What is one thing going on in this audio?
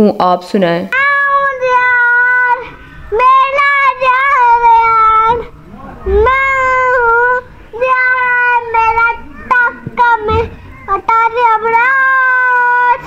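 A young boy sings loudly through a microphone.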